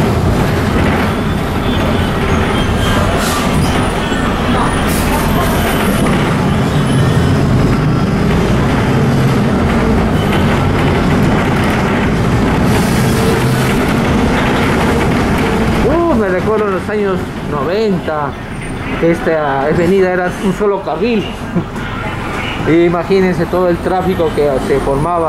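A vehicle rumbles steadily along a road.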